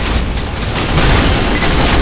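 Fire crackles and roars from a burst of flames.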